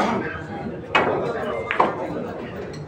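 Pool balls clack against each other.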